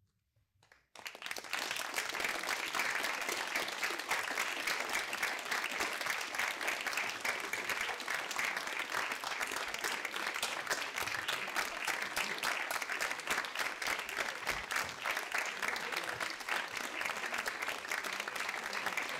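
An audience applauds loudly in a hall.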